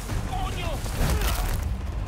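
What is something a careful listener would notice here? A heavy kick thumps against a body.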